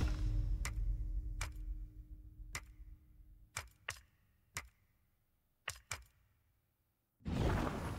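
Short soft menu clicks sound one after another.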